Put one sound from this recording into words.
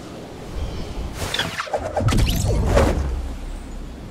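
A glider snaps open with a loud whoosh.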